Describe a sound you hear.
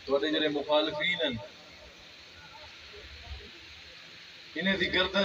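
A man speaks forcefully into a microphone, amplified through loudspeakers.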